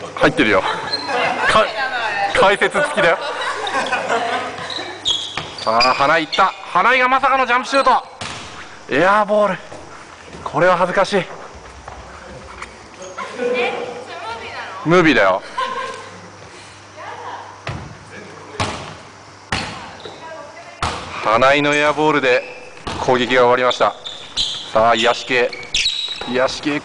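Young men call out to each other in a large echoing gym.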